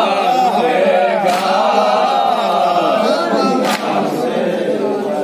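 A crowd of men talk over one another close by.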